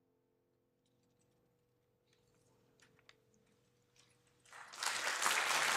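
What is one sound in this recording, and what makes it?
A piano's last chord rings and fades away.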